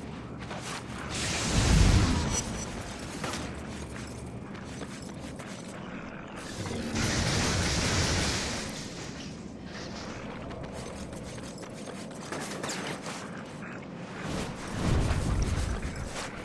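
Game sound effects of thuds and whooshes play through a speaker.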